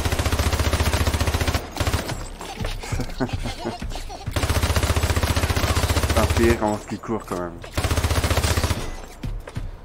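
A rapid-fire gun shoots in long, loud bursts.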